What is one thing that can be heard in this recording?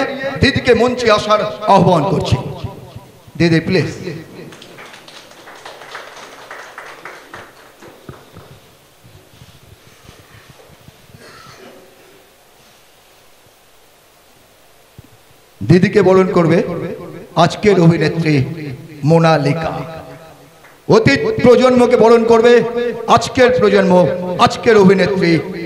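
A man speaks with animation into a microphone through a loudspeaker.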